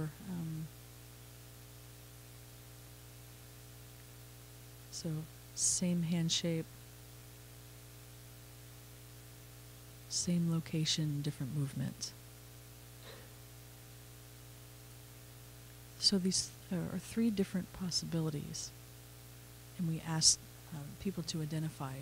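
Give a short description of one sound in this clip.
A man speaks calmly into a microphone in short bursts with long pauses.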